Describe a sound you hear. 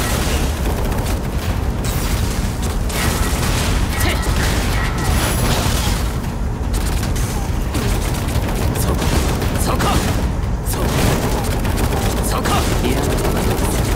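Blades whoosh and slash through the air.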